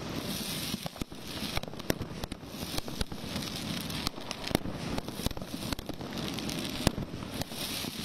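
Firework shells burst with sharp bangs.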